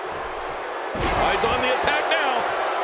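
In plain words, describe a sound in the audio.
A body slams onto the ring mat with a heavy thud.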